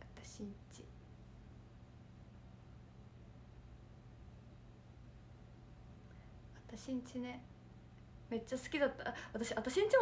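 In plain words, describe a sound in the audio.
A young woman speaks softly and close to a microphone, with pauses.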